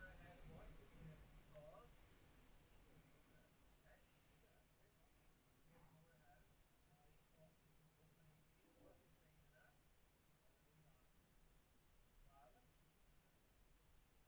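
A comb rustles softly through hair.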